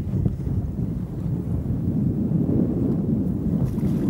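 A fish splashes into the water.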